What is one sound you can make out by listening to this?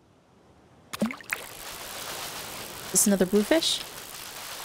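A fishing float splashes and bobs in water.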